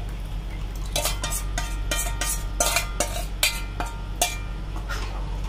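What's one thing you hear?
A metal spoon scrapes against a metal bowl.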